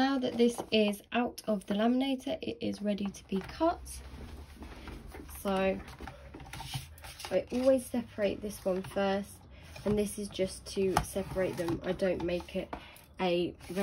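Plastic sheets crinkle and rustle in hands.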